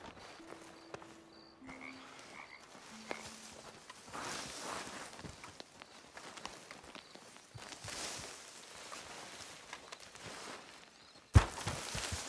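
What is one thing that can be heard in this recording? Leafy bushes rustle as a man pushes through them.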